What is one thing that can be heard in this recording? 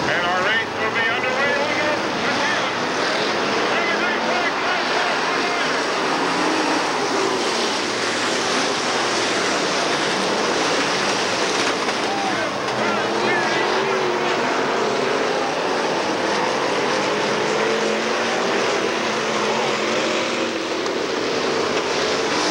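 Several race car engines roar loudly as the cars speed past.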